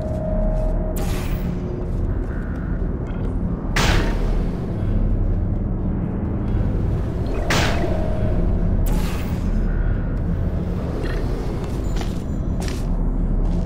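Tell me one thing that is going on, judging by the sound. A portal gun fires with sharp bursts.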